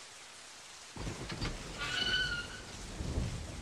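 A barred metal gate creaks open.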